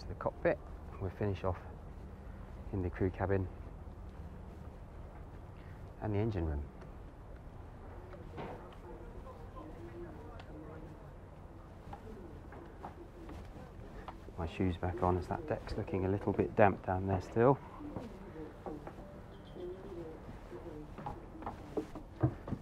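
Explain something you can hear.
Water laps gently against boat hulls.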